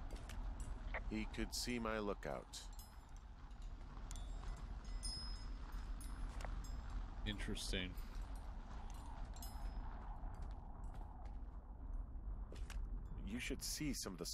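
A man speaks calmly over a walkie-talkie.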